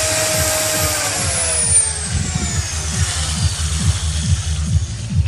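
An electric drill winds down and falls silent.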